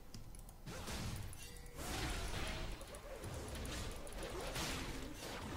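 Video game combat effects clash and zap.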